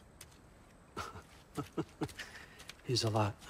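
An older man chuckles.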